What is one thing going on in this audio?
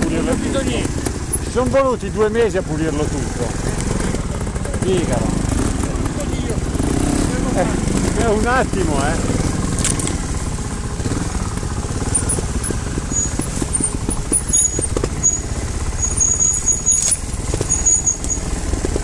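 A motorcycle engine idles and revs sharply in bursts nearby.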